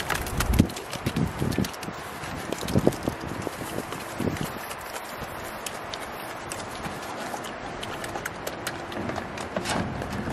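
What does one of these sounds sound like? Pigs slurp and chomp wet food.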